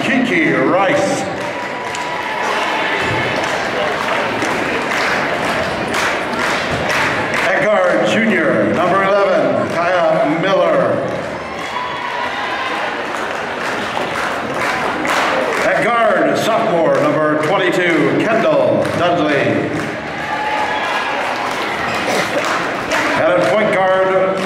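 A crowd cheers and chatters loudly in a large echoing hall.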